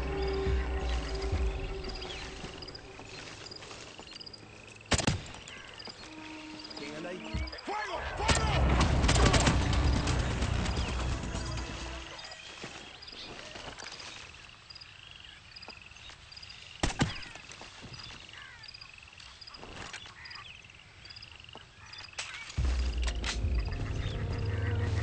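Leaves rustle as someone pushes through dense foliage.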